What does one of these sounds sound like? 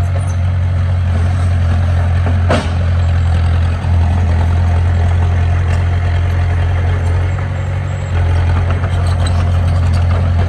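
Dirt and rocks scrape and tumble as a bulldozer pushes soil.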